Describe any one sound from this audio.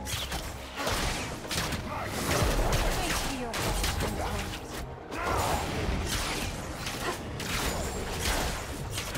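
Magic spells burst and whoosh in quick succession.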